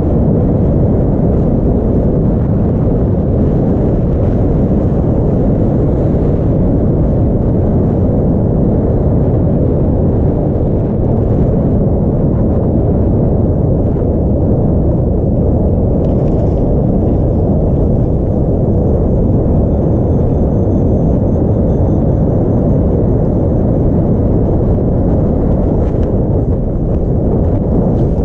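Wind roars steadily past, close and loud.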